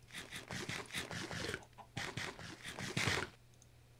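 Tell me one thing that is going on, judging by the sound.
Small items pop out of a broken wooden block with quick light pops.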